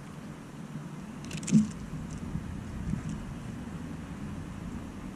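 Wind blows softly outdoors and rustles tree leaves.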